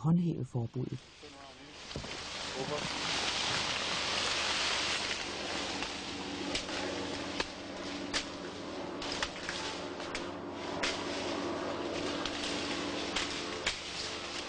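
Tall leafy stalks rustle and snap as a man pushes through them.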